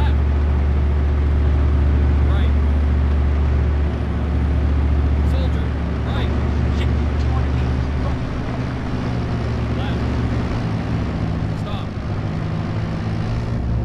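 A heavy tank engine rumbles steadily.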